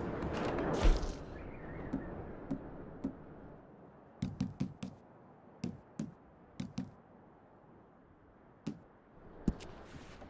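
Soft menu clicks tick one after another.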